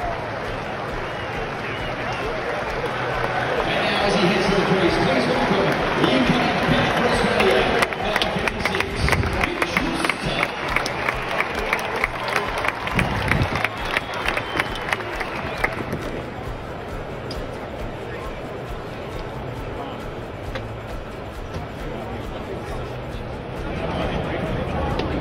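A large crowd murmurs and chatters in an open stadium.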